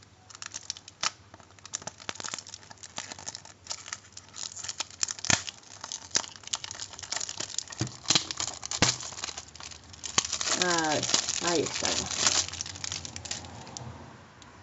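Plastic wrap crinkles and crackles as hands peel it off.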